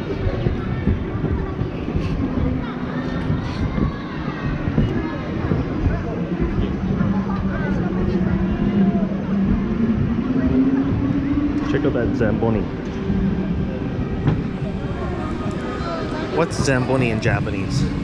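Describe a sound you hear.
Children talk and chatter close by in a large echoing hall.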